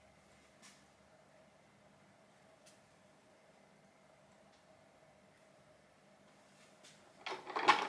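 Thick liquid pours softly into a mould.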